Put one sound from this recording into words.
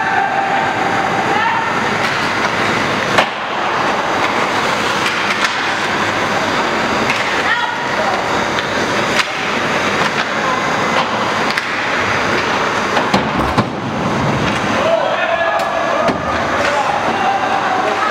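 Ice hockey skates scrape and carve across ice.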